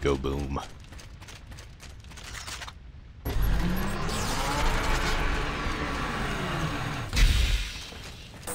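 Heavy mechanical footsteps clank and thud.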